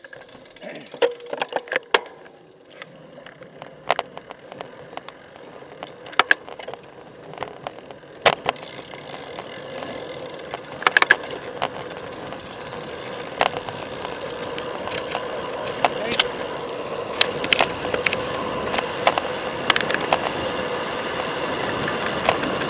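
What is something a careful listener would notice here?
A bicycle rattles and clicks over the road.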